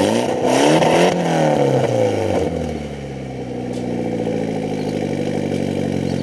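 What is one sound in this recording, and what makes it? A car engine revs loudly through a sports exhaust and then drops back to a steady idle.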